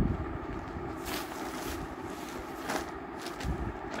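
Cloth rustles as it is lifted and moved.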